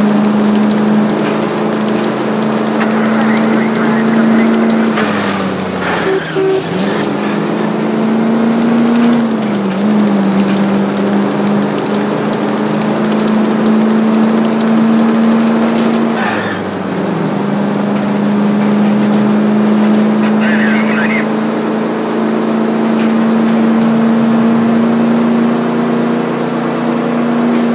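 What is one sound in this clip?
A car engine hums steadily, shifting pitch as the car speeds up and slows down.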